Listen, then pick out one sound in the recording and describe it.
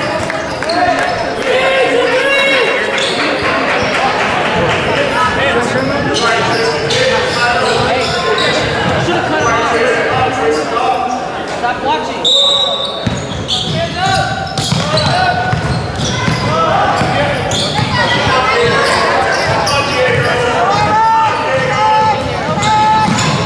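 A crowd of spectators chatters and calls out loudly, echoing through a large hall.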